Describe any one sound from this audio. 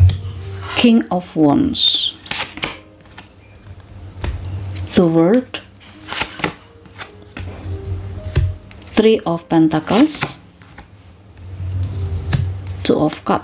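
Playing cards riffle and slap softly as they are shuffled by hand.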